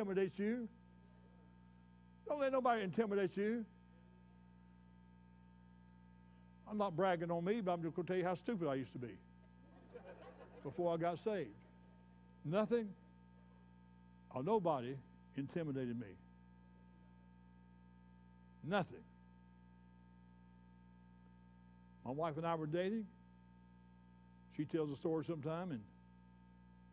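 An elderly man speaks expressively into a microphone, in short phrases with long pauses.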